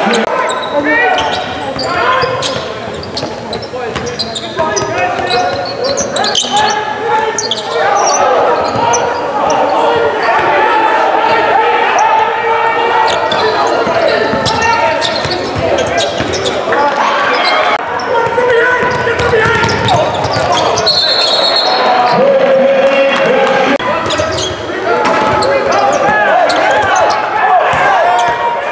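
Sneakers squeak sharply on a court in a large echoing gym.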